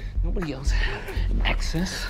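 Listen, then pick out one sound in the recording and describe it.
A man groans in pain during a scuffle.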